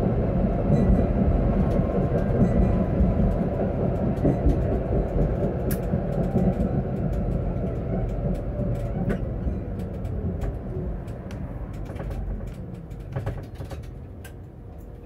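Tram wheels click and clatter over rail joints.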